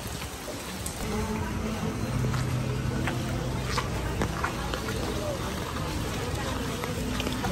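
Feet splash through shallow water on a street.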